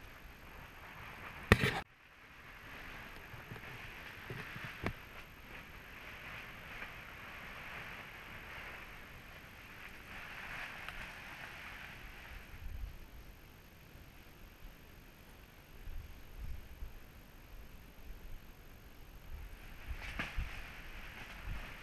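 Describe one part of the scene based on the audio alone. Tall cane leaves rustle in the wind.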